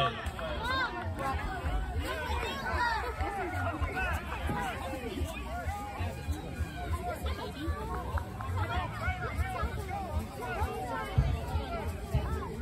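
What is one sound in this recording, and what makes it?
A crowd of young girls chatter and shout nearby, outdoors.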